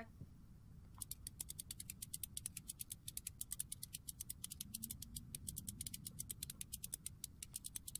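A gramophone's crank is wound, ratcheting with quick, steady clicks.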